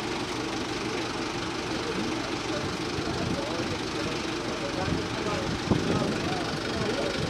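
A crowd of men and women talk and call out close by.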